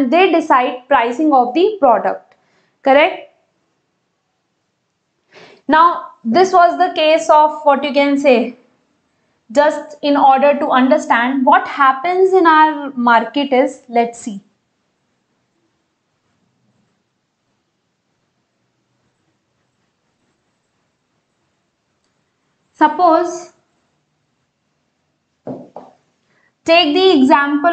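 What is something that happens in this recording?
A young woman explains calmly and clearly, close to a microphone.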